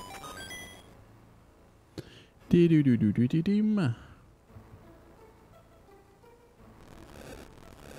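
Chiptune video game music plays softly.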